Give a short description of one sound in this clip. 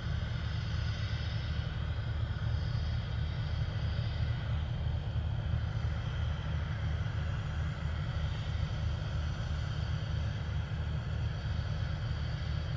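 Gas hisses steadily as vapour vents from a rocket on its pad.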